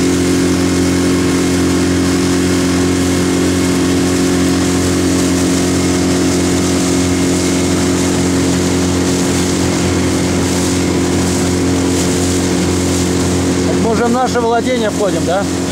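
A boat's outboard motor drones steadily throughout.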